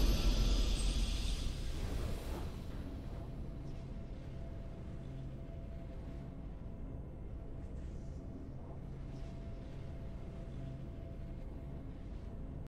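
Low, steady game music hums on.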